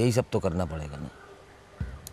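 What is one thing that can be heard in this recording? A man calls out loudly in a drawn-out voice.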